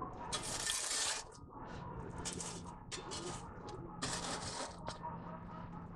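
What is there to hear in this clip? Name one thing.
Flames crackle softly.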